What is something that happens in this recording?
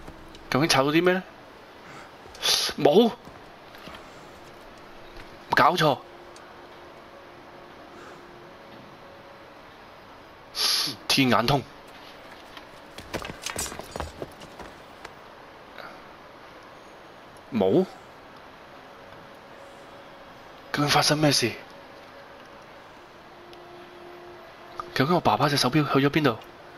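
A young man speaks in short, strained bursts close by.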